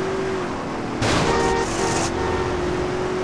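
Metal scrapes against concrete with a grinding screech.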